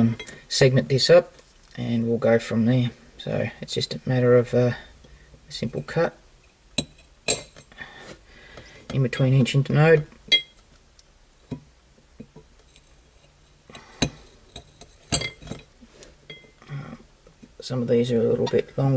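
Metal tweezers tap and scrape lightly on a plate.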